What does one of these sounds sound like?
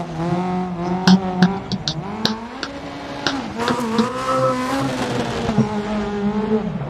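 A rally car engine revs hard, rising and falling in pitch.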